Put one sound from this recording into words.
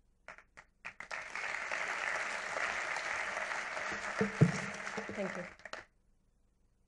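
An audience applauds in a large hall.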